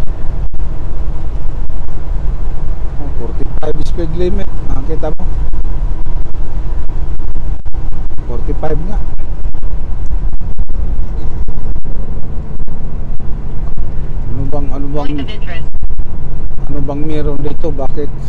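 A semi-truck's engine drones from inside the cab while it cruises along a highway.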